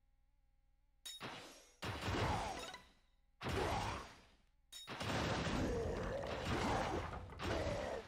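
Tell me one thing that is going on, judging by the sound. Game attack effects crash and whoosh in loud bursts.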